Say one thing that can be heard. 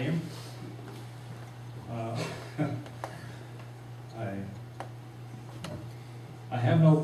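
An elderly man speaks slowly over a microphone and loudspeakers.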